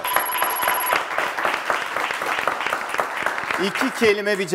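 A small audience claps.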